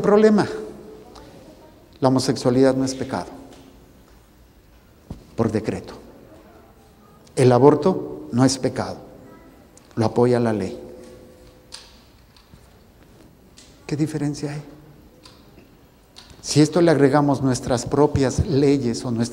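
An elderly man speaks calmly through a microphone, in short phrases with pauses, in an echoing room.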